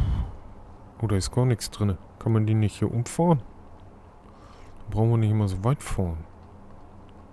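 A man speaks calmly into a headset microphone, close by.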